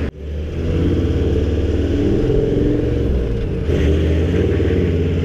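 A vehicle engine hums steadily up close as it drives.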